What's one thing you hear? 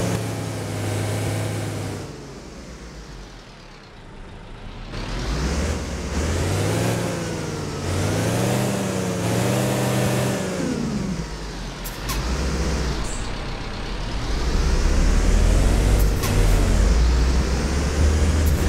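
A bus engine rumbles and revs up and down, rising and falling in pitch.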